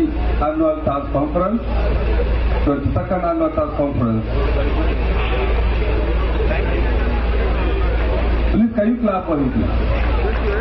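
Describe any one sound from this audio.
An elderly man speaks calmly through a microphone and loudspeakers.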